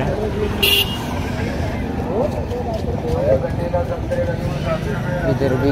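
A motorbike engine hums past.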